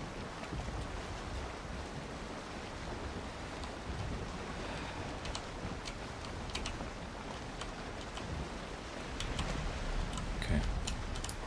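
Water splashes and rushes against a sailing boat's hull.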